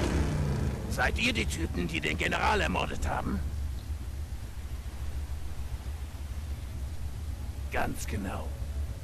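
A man speaks calmly in a low, stern voice.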